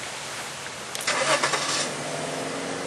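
A car door slams shut nearby.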